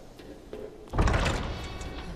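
A heavy door creaks open with a loud thud.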